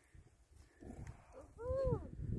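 A camel groans.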